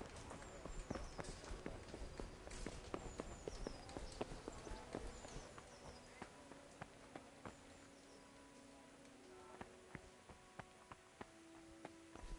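Footsteps walk on stone and wooden planks.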